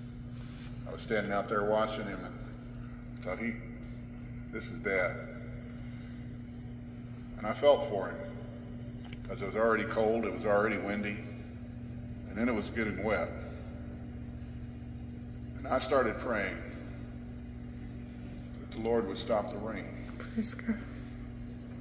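An elderly man speaks slowly and deliberately through a microphone, with pauses between phrases.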